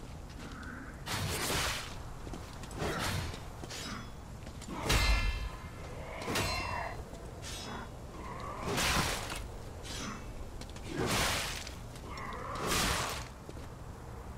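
Swords clash and ring in quick bursts.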